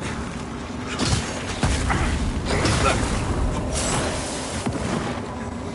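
Flames roar and burst in a fiery explosion.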